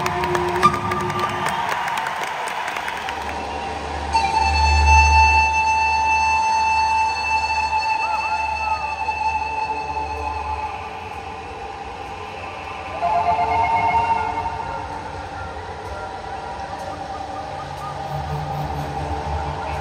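A woman sings into a microphone over loudspeakers in a large echoing hall.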